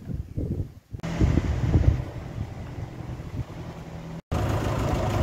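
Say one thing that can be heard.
A tractor engine idles close by with a steady rumble.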